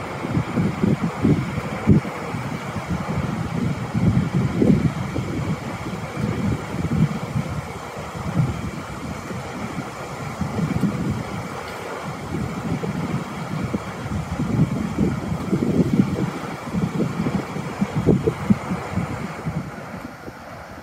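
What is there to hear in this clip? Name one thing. A large waterwheel churns and splashes as it turns.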